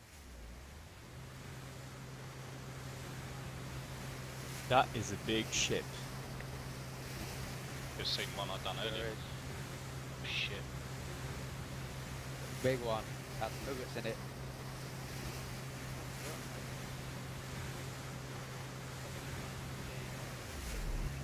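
A boat engine drones.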